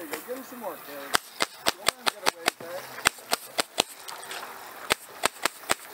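A jet of water sprays and splashes onto the water.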